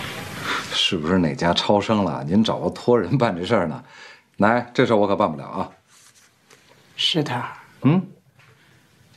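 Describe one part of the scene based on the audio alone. A middle-aged man speaks quietly nearby.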